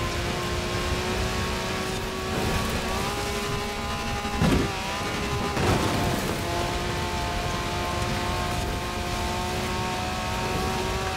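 Tyres rumble and thump over rough grass.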